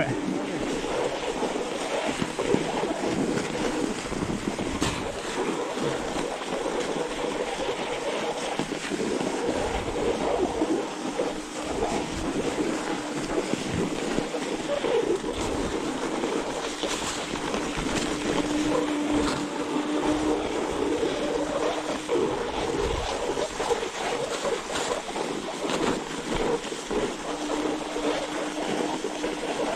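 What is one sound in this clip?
Bicycle tyres crunch and squeak through deep snow.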